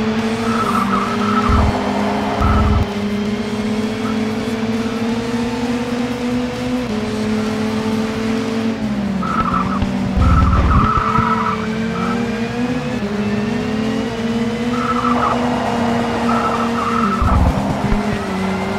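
Tyres screech in short bursts through the corners.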